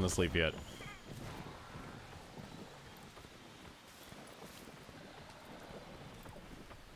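Armored footsteps rustle quickly through tall grass.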